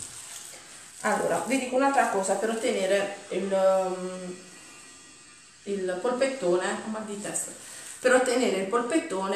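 A woman talks calmly and clearly, close by.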